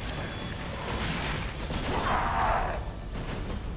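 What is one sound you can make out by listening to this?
Metal scrapes sharply against metal, throwing off sparks.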